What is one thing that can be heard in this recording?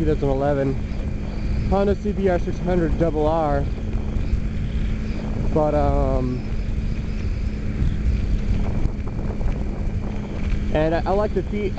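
Wind rumbles and buffets loudly.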